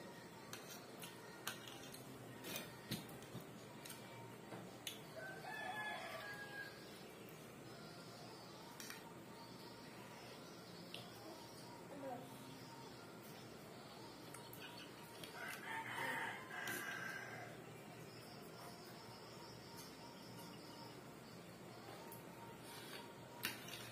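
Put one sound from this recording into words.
A fork and spoon clink and scrape against a plate.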